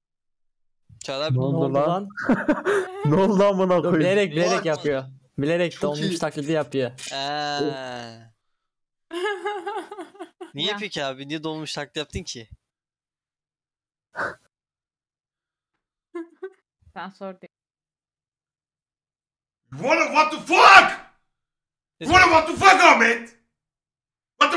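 A young man talks with animation close to a microphone, with pauses.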